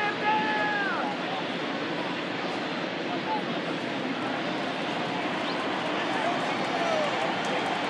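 Fans in a stadium crowd whistle and call out now and then.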